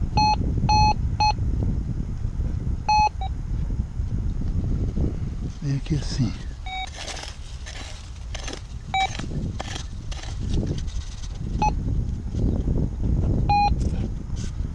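A metal detector beeps in short high tones.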